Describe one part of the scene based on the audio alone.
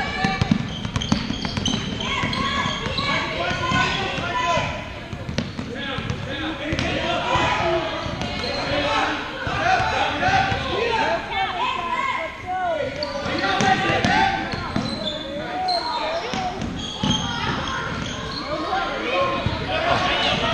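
Sneakers squeak on a hard court in a large echoing gym.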